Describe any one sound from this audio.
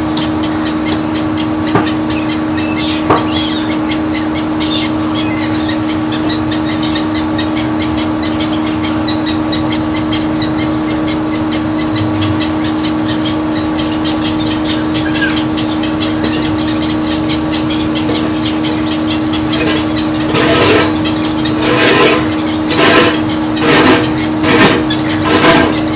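A sprinkler hisses as it sprays water over plants outdoors.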